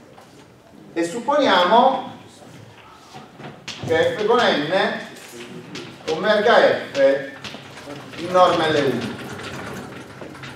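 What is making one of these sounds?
A man lectures in a calm, measured voice.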